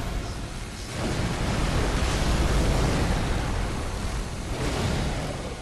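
Fire roars in loud bursts.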